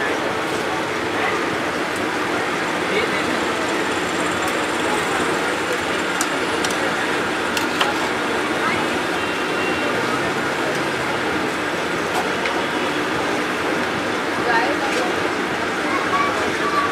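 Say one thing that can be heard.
A metal skimmer scrapes and clinks against a pan.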